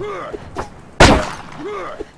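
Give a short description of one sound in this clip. A sword strikes with a sharp clash.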